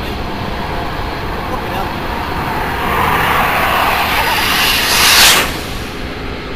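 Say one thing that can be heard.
A jet roars in low and grows to a deafening blast overhead.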